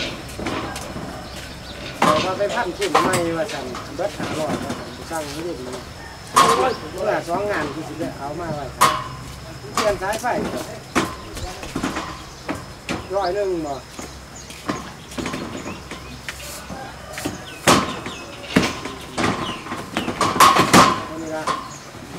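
Footsteps thud and boards knock on a hollow wooden platform.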